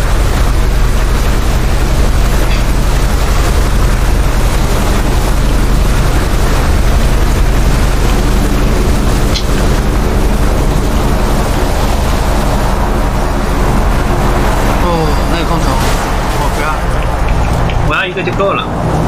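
Water splashes and churns against a boat's hull.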